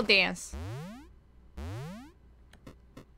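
Electronic game tones sweep quickly upward.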